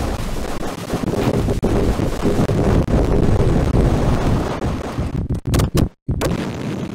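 Weapons fire in rapid bursts.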